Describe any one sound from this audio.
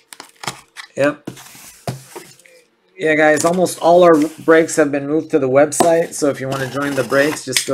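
A blade slices through packing tape.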